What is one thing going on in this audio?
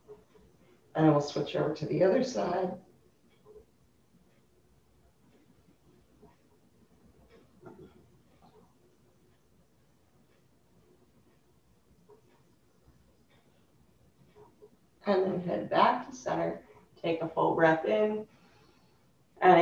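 A woman speaks calmly, as if giving instructions.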